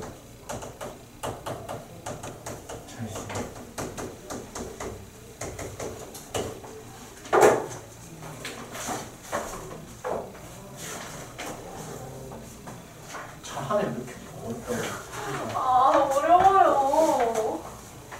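A young man speaks calmly, lecturing.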